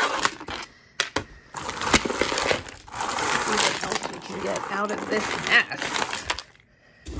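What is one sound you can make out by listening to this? Beads and metal jewelry clink and rattle as hands sort through a pile.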